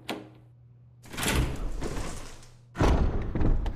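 A heavy door creaks slowly open.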